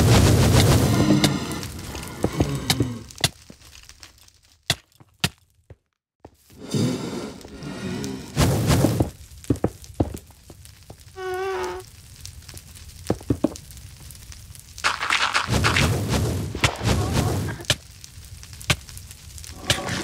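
Blocks break with short dull knocks.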